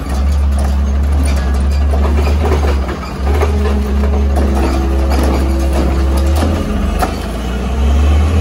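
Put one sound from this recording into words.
A garbage truck's hydraulic arm whines and clanks as it works.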